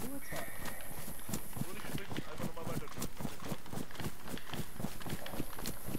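Tall grass rustles and swishes against legs.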